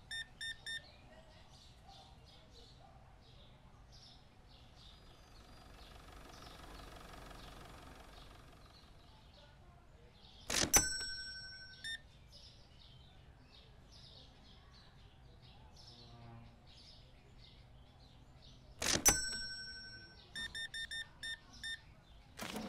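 A card terminal beeps as keys are pressed.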